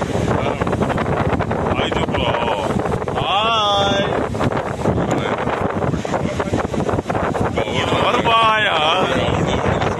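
Young men talk cheerfully close by.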